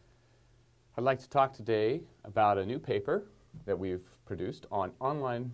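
A middle-aged man speaks calmly and clearly into a microphone, as if presenting.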